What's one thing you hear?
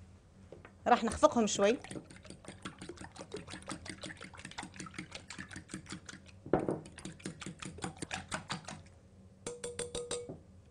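A fork clinks rapidly against a glass bowl, whisking eggs.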